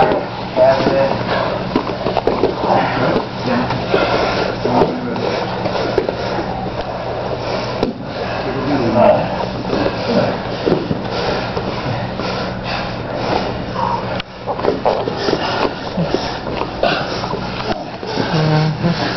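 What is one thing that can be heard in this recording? A man grunts and breathes hard while wrestling.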